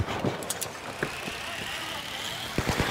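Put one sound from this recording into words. A grappling line zips and whooshes as it pulls taut.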